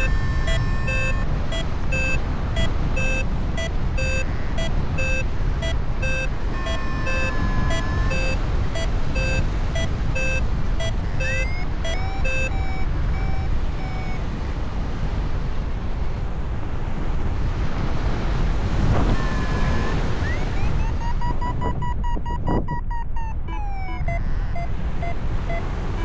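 Wind roars steadily past in open air.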